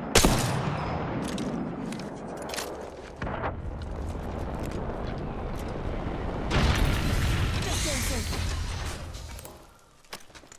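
Loud gunfire and explosions roar and crackle.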